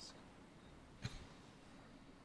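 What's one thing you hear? A short click sounds as a menu changes.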